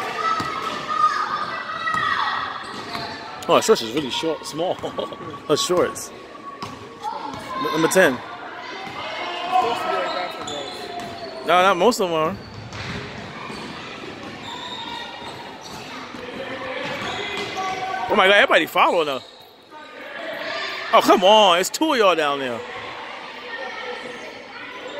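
Young girls shout and call out in a large echoing hall.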